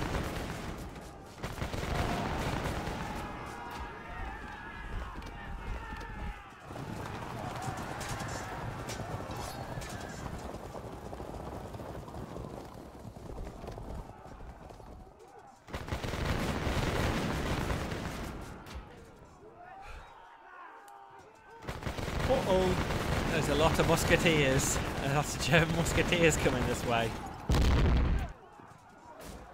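Muskets fire in volleys during a battle.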